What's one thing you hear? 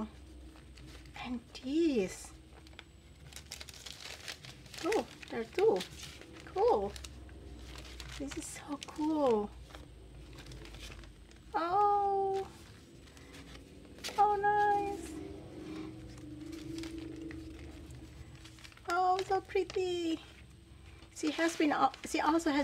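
Paper packets rustle and crinkle as they are handled.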